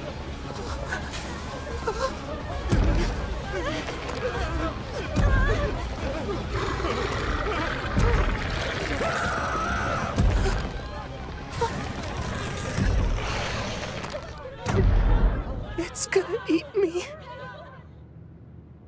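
A young boy speaks in a frightened voice.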